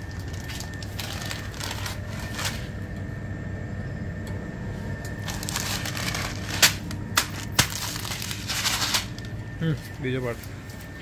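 A plastic pouch crinkles as it is handled.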